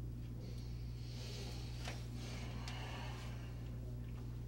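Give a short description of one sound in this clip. A man shifts in a chair with soft rustling and creaks.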